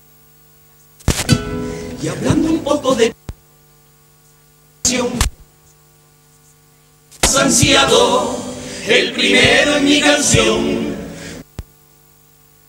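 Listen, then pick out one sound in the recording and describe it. A guitar strums along with the singers.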